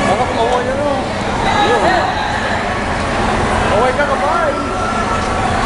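A crowd of young women shouts and screams excitedly nearby.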